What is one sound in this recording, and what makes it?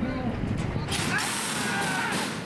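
Starting gates bang open with a metallic clang.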